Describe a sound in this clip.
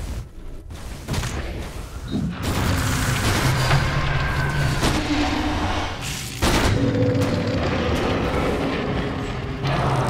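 Magic spells burst and crackle during a game battle.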